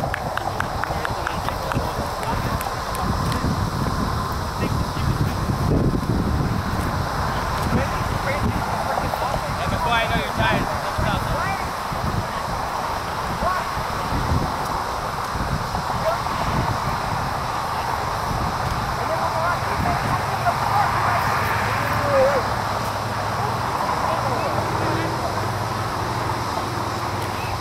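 Distant players shout across an open field.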